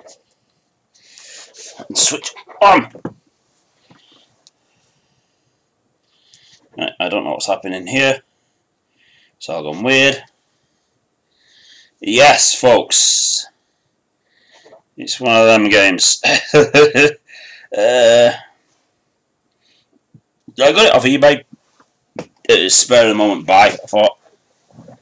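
A man speaks calmly into a close microphone, in bursts with pauses.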